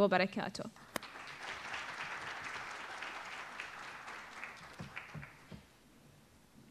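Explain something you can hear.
An audience applauds in a large hall, then the applause fades.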